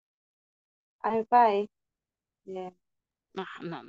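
Another young woman speaks briefly over an online call.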